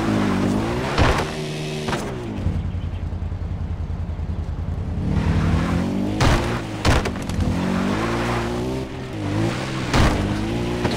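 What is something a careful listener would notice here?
Knocks and thumps sound as a quad bike bounces over bumps.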